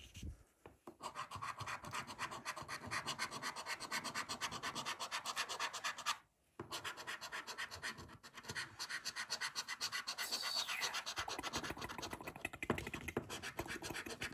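A coin scratches rapidly and steadily across a card.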